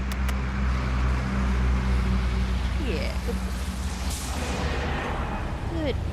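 A bus engine rumbles as the bus drives past.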